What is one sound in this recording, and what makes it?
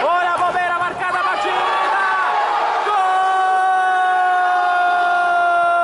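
Men shout from across an echoing hall.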